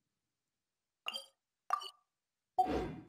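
Soft interface chimes ring twice.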